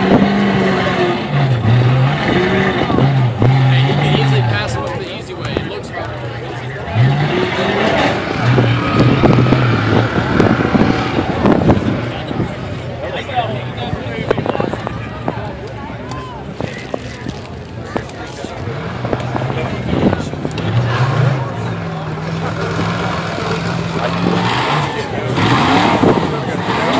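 An off-road engine revs hard and roars in bursts.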